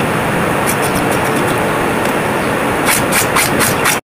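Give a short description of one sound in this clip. A peeler scrapes the skin off a cucumber.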